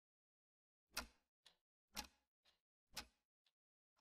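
Remote control buttons click a few times.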